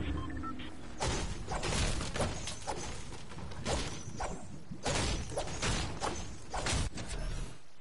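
A pickaxe strikes wood again and again with sharp, cracking blows.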